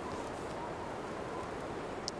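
A campfire crackles and hisses softly.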